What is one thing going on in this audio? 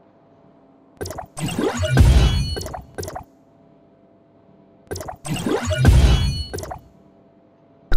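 A bright whooshing chime rings out over a deep rumble.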